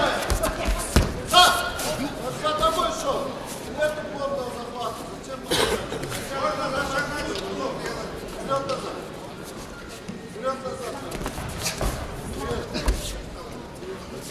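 Bodies and bare feet thump on a judo mat.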